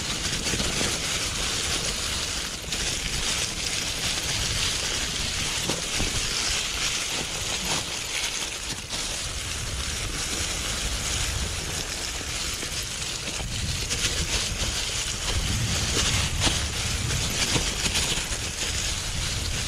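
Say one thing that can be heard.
A mountain bike rattles and clatters on a rough downhill trail.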